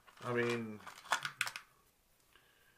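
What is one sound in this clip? Plastic lures rattle as a man handles them.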